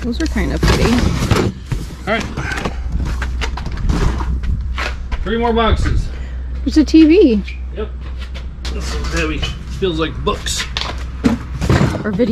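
Cardboard boxes rustle and thump as a man handles them.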